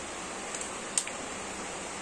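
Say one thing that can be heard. A hard drive taps lightly against plastic as it is handled.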